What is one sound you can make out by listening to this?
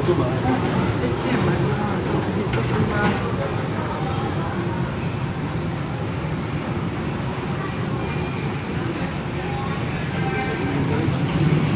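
Footsteps echo in a large hall.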